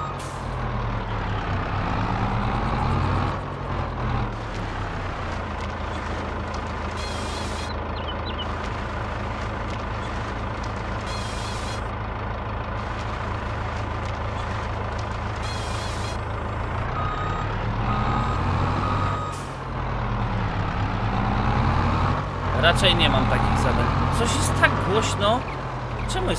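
A machine engine hums steadily.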